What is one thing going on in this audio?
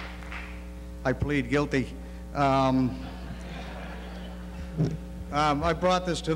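An elderly man speaks into a microphone through a loudspeaker in a large echoing hall.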